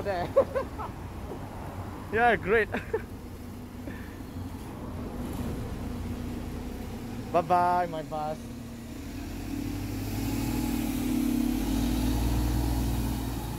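A bus engine rumbles nearby, growing louder as the bus pulls away.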